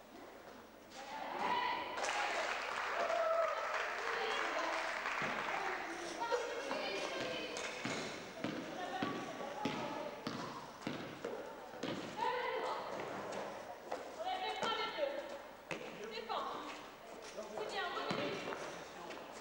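Women shout and call out to each other in a large echoing hall.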